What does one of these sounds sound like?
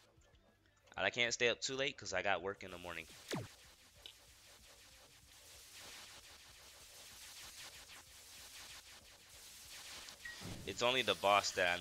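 Magical spell blasts whoosh and boom repeatedly.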